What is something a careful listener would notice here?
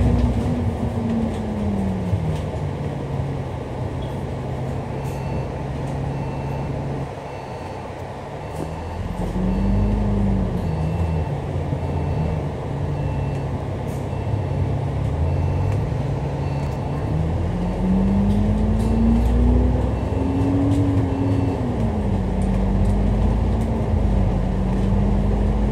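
A bus engine drones steadily, its pitch rising and falling as it speeds up and slows down.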